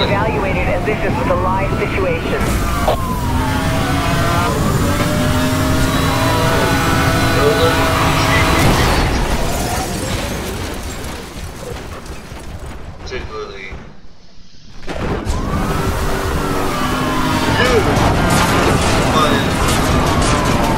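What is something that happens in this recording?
A racing car engine roars and revs up at high speed.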